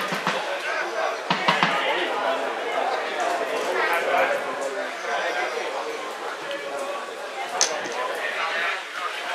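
Men shout to each other outdoors across an open field.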